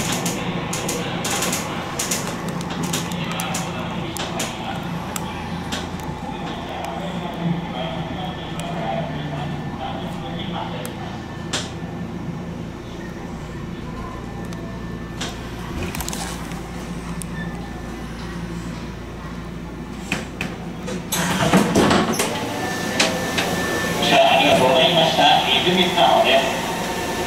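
A train hums steadily as it rolls along the tracks.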